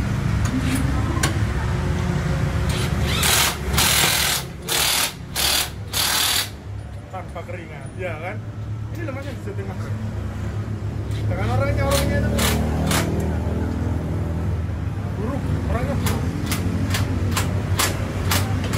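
Metal tools clank against a wheel rim.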